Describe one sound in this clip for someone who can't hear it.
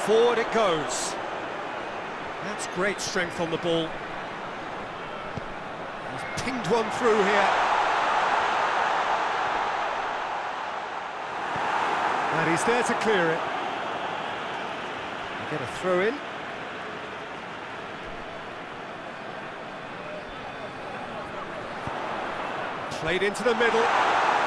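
A large stadium crowd roars and cheers, swelling and fading in waves.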